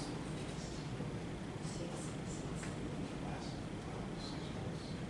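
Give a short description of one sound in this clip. A group of older adults murmur in quiet conversation in an echoing room.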